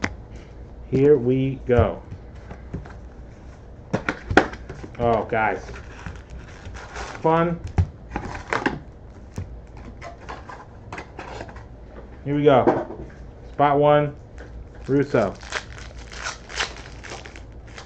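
Cardboard packs rustle and crinkle as hands open them.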